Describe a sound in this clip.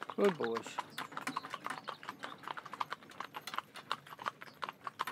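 A carriage rattles along behind trotting horses.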